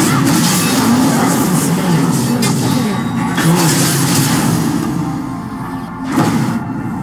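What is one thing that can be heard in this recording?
Magic blasts and hits crackle and burst in a fast battle.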